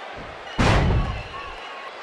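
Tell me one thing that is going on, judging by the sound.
A heavy thud sounds as a wrestler hits the mat.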